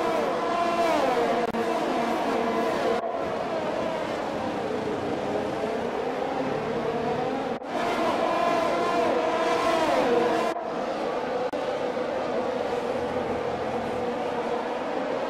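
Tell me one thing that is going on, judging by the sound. Racing car engines scream at high revs, rising and falling in pitch as the cars shift gears.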